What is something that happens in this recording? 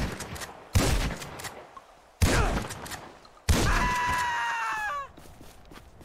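A shotgun fires loud blasts that echo.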